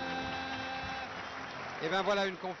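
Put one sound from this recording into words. Two men sing together into a microphone, holding a long note.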